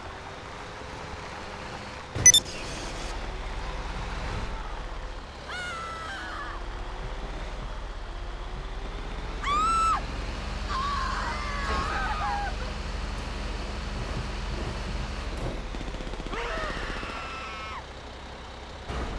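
A tank engine rumbles as the tank drives along a road.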